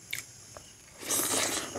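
A man chews food wetly and loudly, very close.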